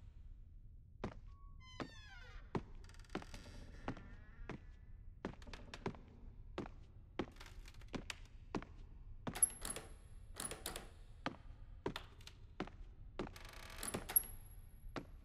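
Footsteps fall at a walking pace indoors.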